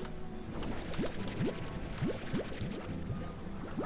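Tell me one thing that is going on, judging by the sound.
Short rising pops sound as items are pulled in one after another.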